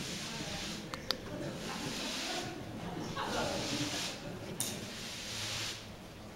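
Skis scrape and slide across a hard floor.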